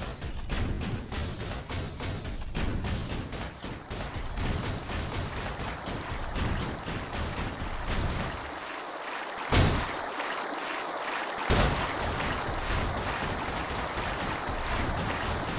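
Heavy metal footsteps clank rhythmically as a robot walks.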